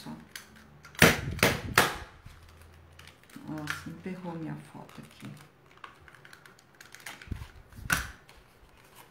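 A paper punch clicks as it presses through paper.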